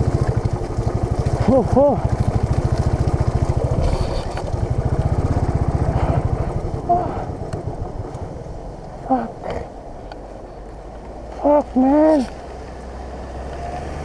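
Motorcycle tyres crunch over a gravel track.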